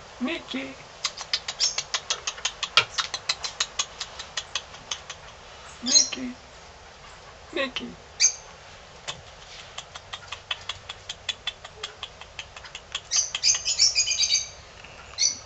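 A kinkajou smacks its lips as it chews food.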